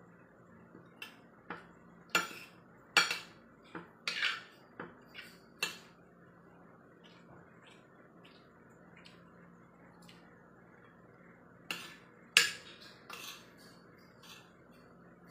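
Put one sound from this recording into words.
Metal cutlery clinks and scrapes against a plate.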